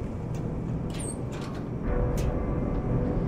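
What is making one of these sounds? A metal vent cover clanks open.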